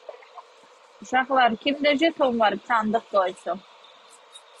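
A young woman speaks close to the microphone, briefly and calmly.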